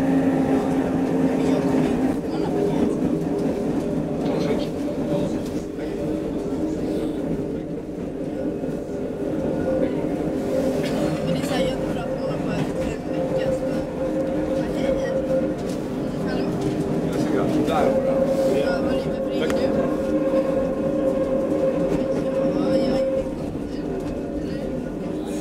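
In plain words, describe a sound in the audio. Train wheels whine with a steady hum.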